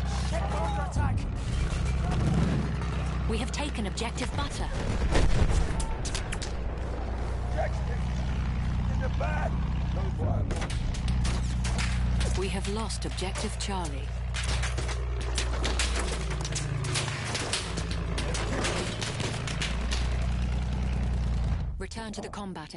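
A biplane's piston engine drones.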